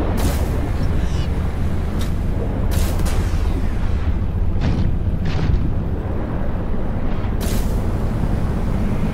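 A submarine engine hums low and steady underwater.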